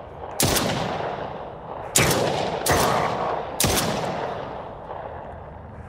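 A pistol fires single shots that echo loudly.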